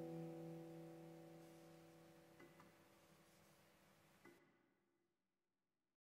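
A handpan rings with soft, bell-like notes that slowly fade away.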